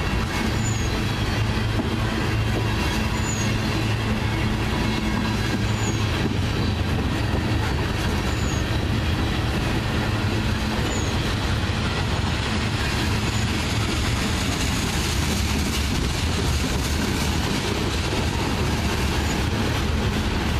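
A freight train rumbles loudly past close by.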